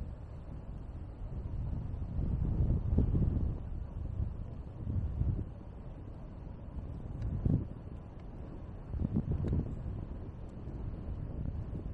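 Tyres roll steadily over a paved path.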